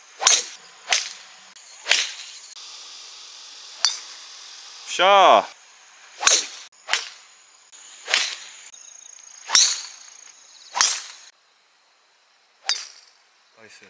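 A golf club strikes a ball with a sharp crack, again and again.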